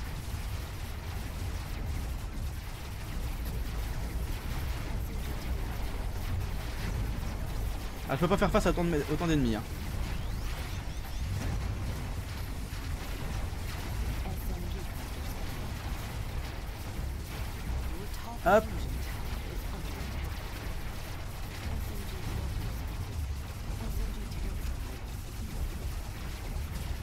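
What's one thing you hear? A jet engine roars with a low, steady rumble.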